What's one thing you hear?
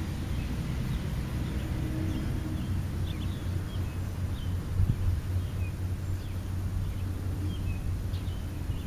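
Birds chirp softly in the distance.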